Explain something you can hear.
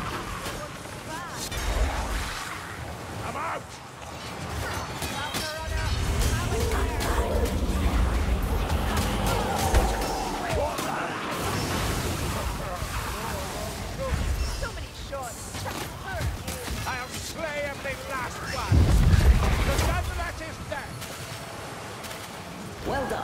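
Weapons clash and slash against creatures in a fierce melee.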